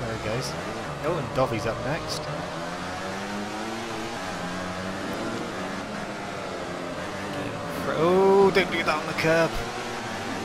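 A motorcycle engine roars at high revs, rising and falling in pitch as it shifts gears.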